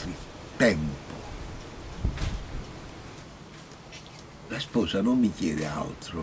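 An elderly man speaks close by, in a deep voice with pauses.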